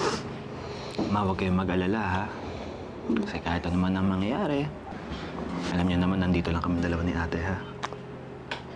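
A young man speaks softly and gently close by.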